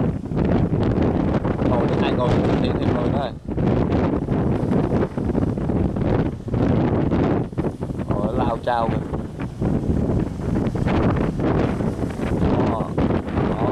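Strong wind roars outdoors.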